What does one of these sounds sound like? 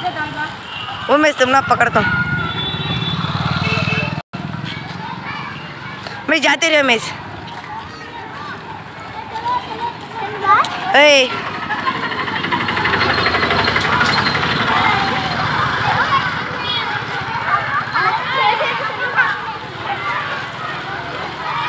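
Many children chatter and call out loudly outdoors.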